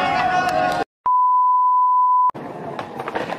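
A steady high beep sounds.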